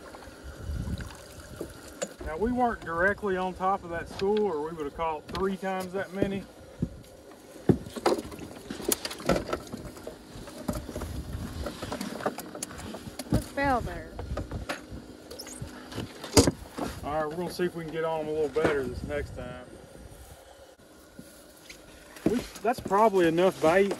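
A fishing net rustles.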